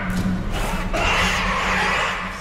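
A creature lets out a harsh, rasping shriek.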